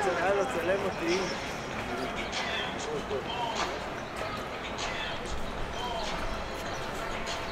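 A quiet city street hums with a low, steady murmur outdoors.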